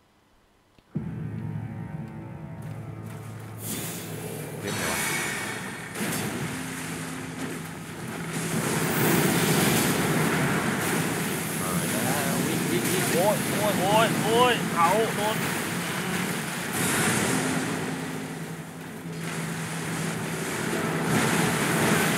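Water splashes as a fighter moves through shallow water.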